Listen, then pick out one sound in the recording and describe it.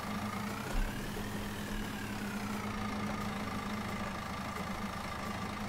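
A heavy loader engine hums steadily with a slight rise and fall in pitch.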